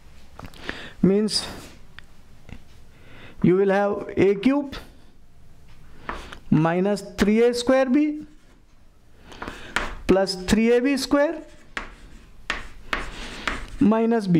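A middle-aged man speaks calmly and clearly, as if explaining, close by.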